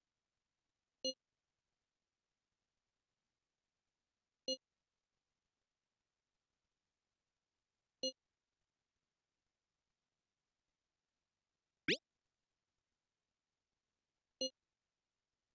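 A short notification chime sounds each time a new chat message pops up.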